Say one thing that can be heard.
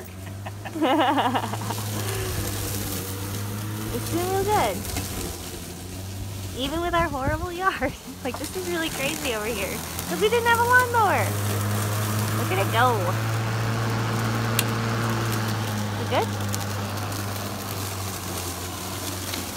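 An electric lawn mower hums steadily up close.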